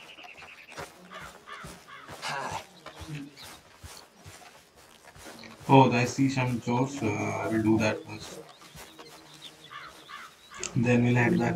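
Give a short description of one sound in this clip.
Footsteps walk over soft grass.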